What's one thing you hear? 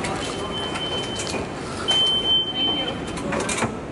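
A card reader beeps twice.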